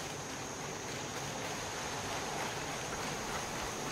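Footsteps run through grass outdoors.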